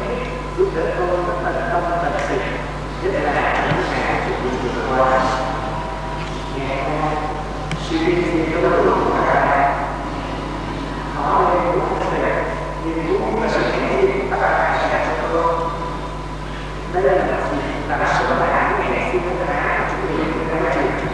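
A man chants at a slow pace through a loudspeaker, with echo around him.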